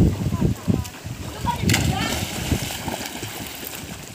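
A child jumps and splashes into a pool of water.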